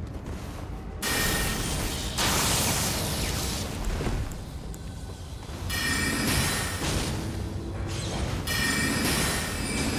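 A magic spell whooshes and crackles loudly.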